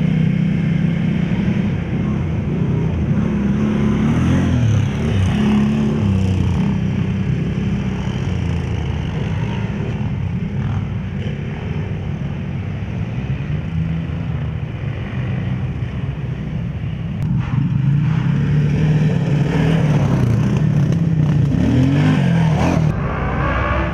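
Quad bike engines rumble and rev on a dirt track.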